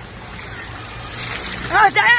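Water splashes as it is poured over a person's head.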